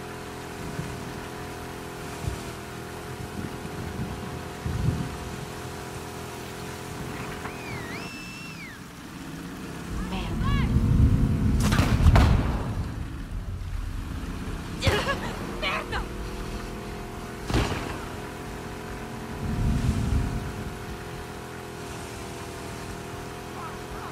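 An outboard motor drones steadily.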